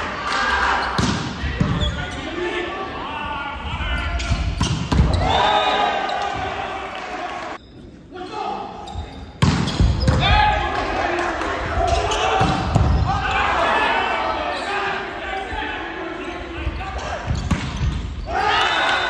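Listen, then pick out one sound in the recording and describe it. A volleyball is struck hard in a large echoing gym.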